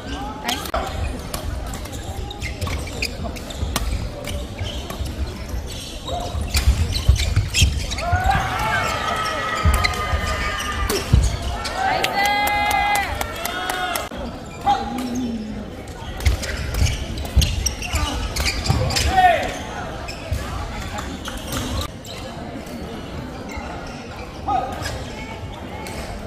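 Rackets smack a shuttlecock back and forth in quick rallies.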